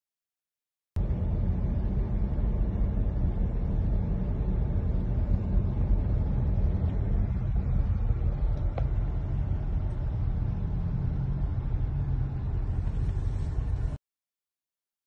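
Tyres rumble steadily on a road from inside a moving car.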